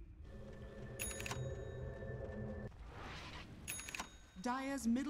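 Magic spell effects chime and ring in a video game.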